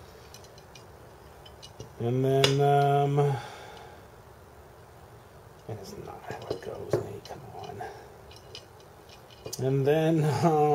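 Metal parts clink and tap together.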